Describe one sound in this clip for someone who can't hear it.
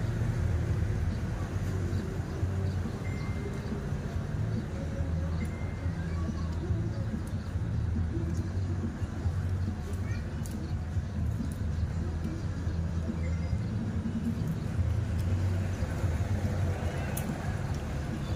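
Leaves snap as a man tears them.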